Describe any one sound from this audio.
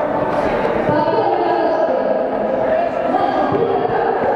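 Children's running feet patter on the track.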